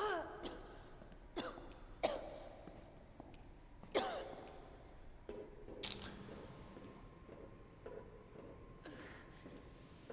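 Footsteps tap on a hard floor in an echoing space.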